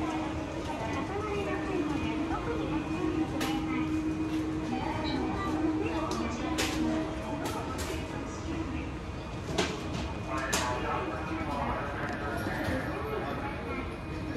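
People's voices murmur and echo in a large hall.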